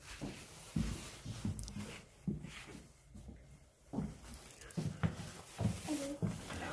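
Footsteps thud on creaking wooden floorboards.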